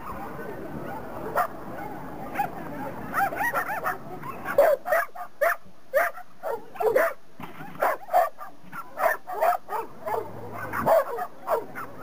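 A young woman calls out short, lively commands outdoors.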